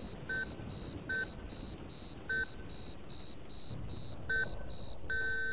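A heart monitor beeps at a slow, uneven pace.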